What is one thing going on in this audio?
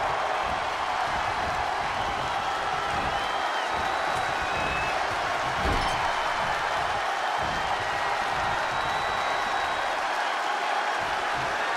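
Bodies thud against each other in a wrestling ring.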